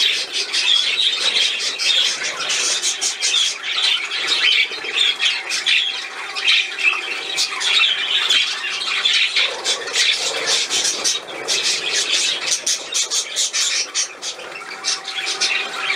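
Budgies chirp and chatter busily up close.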